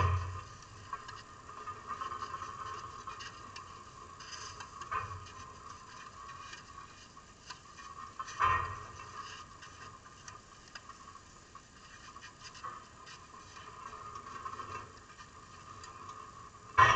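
Tennis rackets strike a ball back and forth.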